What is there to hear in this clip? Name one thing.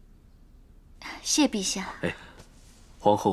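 A young woman replies gently, close by.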